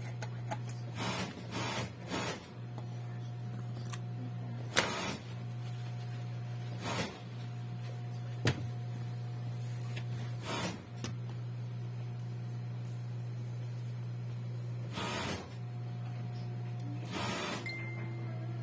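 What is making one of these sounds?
Fabric rustles and crinkles as it is handled.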